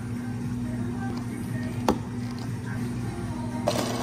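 A plastic lid snaps onto a cup.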